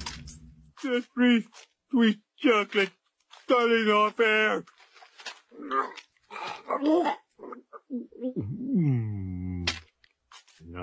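A man gurgles and moans with his mouth full.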